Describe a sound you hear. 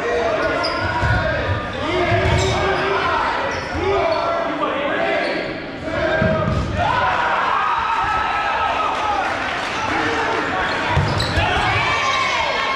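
A rubber ball bounces and thuds on the floor.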